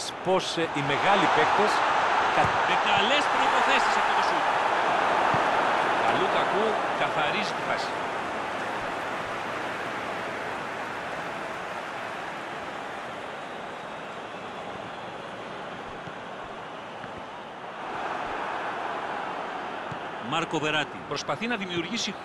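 A large stadium crowd roars, swelling loudly and then slowly fading.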